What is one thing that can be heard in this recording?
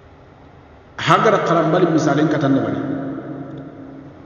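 A young man recites in a melodic, chanting voice close to a microphone.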